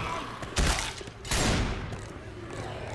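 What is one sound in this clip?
Gunshots bang loudly in quick bursts.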